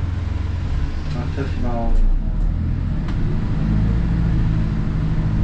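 A bus engine revs up as the bus pulls away.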